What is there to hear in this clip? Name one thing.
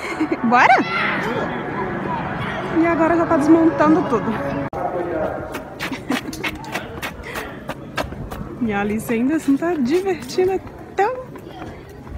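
A young girl talks and squeals close by.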